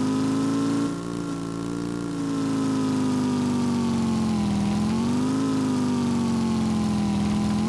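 A motorbike engine hums steadily, its pitch dipping and rising slightly.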